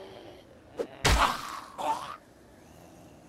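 A metal pan strikes a body with a loud, heavy thump.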